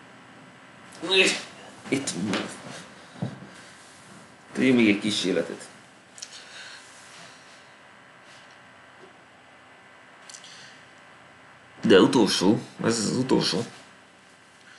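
A young man speaks casually into a microphone in short bursts.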